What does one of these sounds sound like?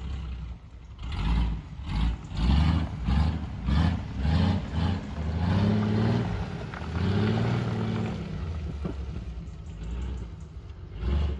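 Tyres splash through muddy puddles.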